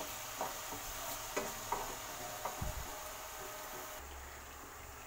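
Hot oil sizzles and bubbles in a pan.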